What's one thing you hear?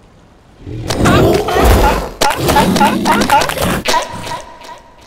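A polar bear roars.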